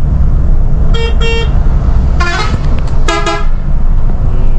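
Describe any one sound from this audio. A bus horn honks in several loud blasts.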